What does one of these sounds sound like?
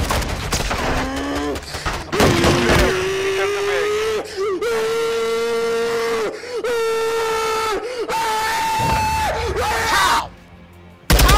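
A young man wails in a long, drawn-out singing voice close to a microphone.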